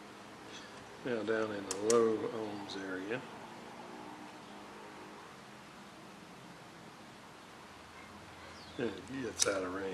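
A rotary dial clicks as it is turned.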